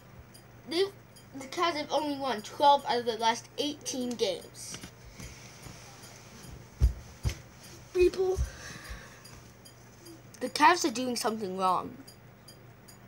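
A young boy talks close to a microphone with animation.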